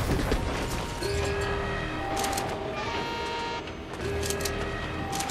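A treasure chest hums with a steady chiming tone.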